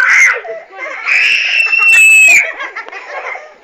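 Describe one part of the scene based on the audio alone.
A young girl squeals and laughs loudly.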